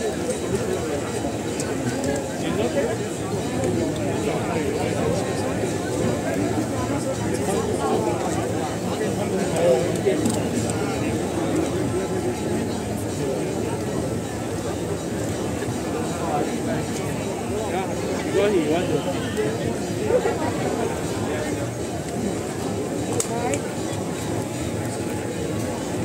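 A large crowd of men and women murmurs and calls out outdoors.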